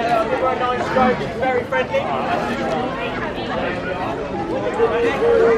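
Adults chatter and laugh outdoors nearby.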